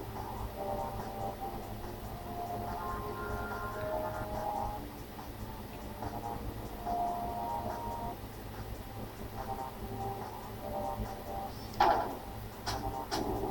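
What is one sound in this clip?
Electronic video game music plays with bleeping tones.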